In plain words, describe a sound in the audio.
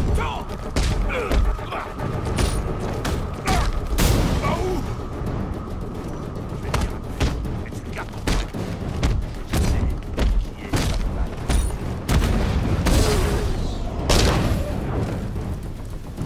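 Punches and kicks land with heavy thuds in a fight.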